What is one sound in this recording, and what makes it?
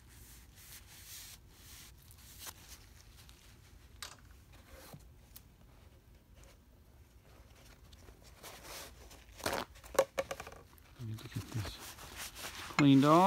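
A cloth wipes and rubs against a metal part.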